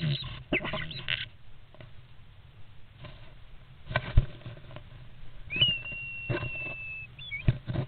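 Starlings rustle and scratch in a nest box up close.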